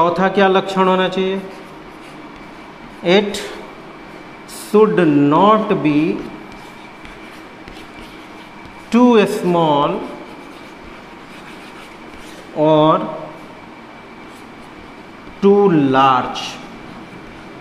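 A man speaks calmly in short phrases with pauses, as if teaching.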